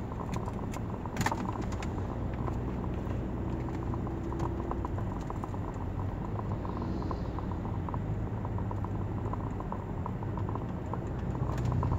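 A car engine hums steadily from inside the car as it drives along a street.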